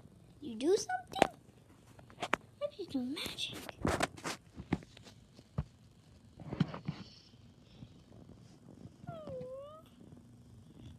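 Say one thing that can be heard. A puppy whimpers softly close by.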